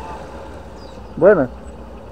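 A man calls out loudly nearby outdoors.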